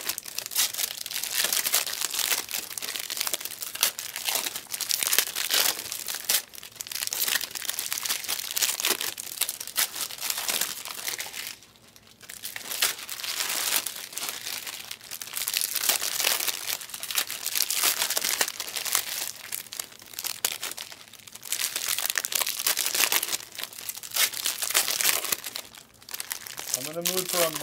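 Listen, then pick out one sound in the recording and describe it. Paper cards rustle and slide against each other close by.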